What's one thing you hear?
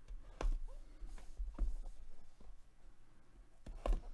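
A cardboard box is handled, with soft knocks and rustles close by.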